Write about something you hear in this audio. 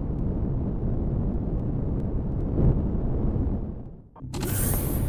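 A spaceship engine rumbles low and steady.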